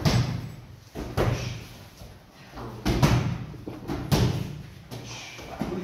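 Kicks and punches smack against hand-held pads.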